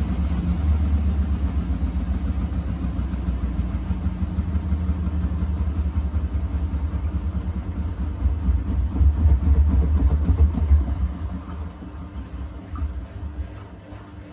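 A washing machine drum turns with a steady low rumble.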